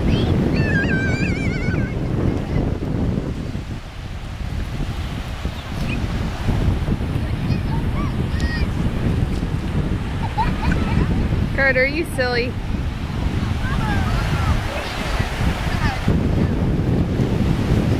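Small waves wash softly onto the shore.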